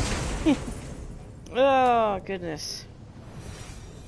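Coins and treasure clink as a chest is looted.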